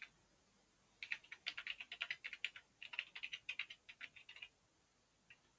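Keyboard keys clatter in quick bursts.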